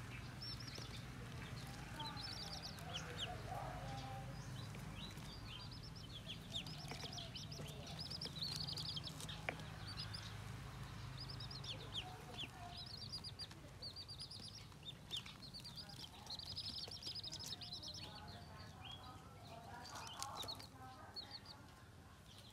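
Newly hatched chicks cheep rapidly in high, shrill peeps.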